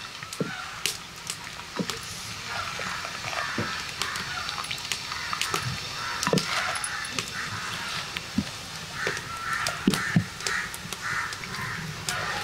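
A ladle clinks against the rim of a pot.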